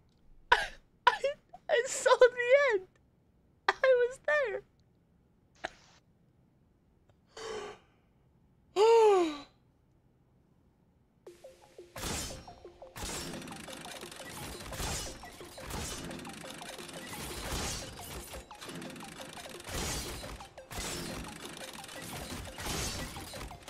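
A young man talks and exclaims with animation close to a microphone.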